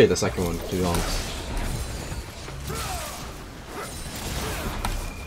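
Fighting sound effects clash and strike in quick bursts.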